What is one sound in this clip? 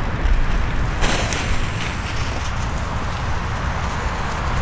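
A lit fuse sizzles and sputters.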